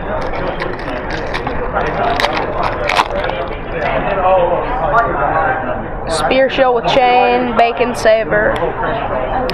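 Cards rustle and flick as hands sort through them.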